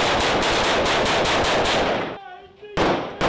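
Rifles fire in rapid bursts close by.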